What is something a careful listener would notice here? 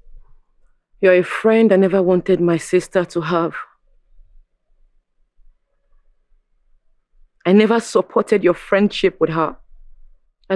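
Another young woman answers with animation, close by.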